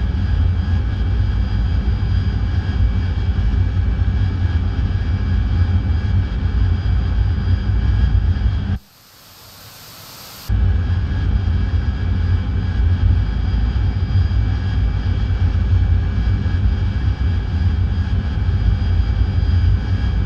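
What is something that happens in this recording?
A jet engine roars steadily from inside a cockpit.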